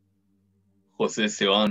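A young man speaks calmly into a microphone, reading aloud.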